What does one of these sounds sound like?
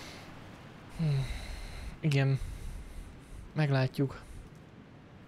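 A young man speaks casually and close into a microphone.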